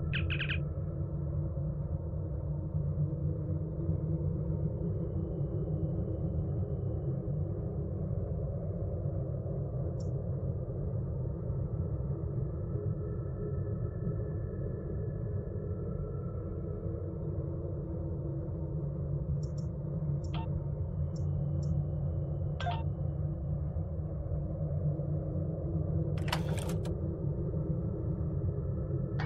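A low engine hum drones steadily.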